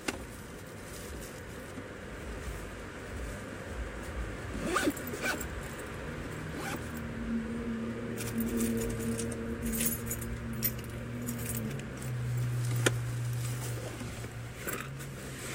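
Fabric rustles as a bag is handled.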